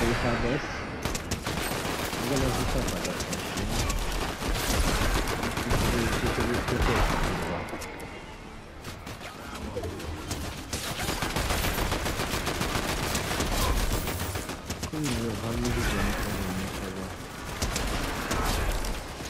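Rapid gunfire crackles from a game.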